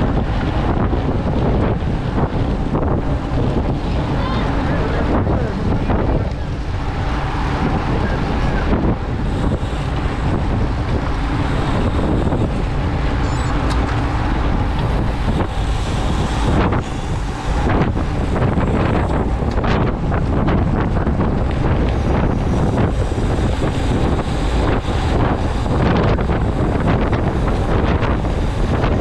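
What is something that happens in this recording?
Bicycle tyres hum steadily on the road.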